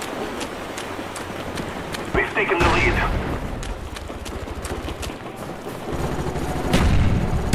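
Quick footsteps crunch through snow at a running pace.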